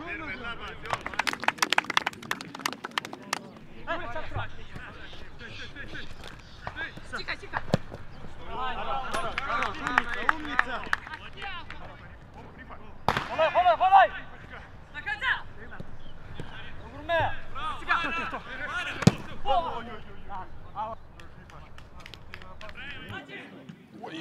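Footballers shout to each other outdoors on a pitch.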